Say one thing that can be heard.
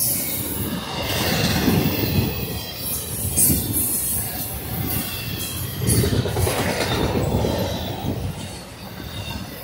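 A freight train rumbles past close by at speed.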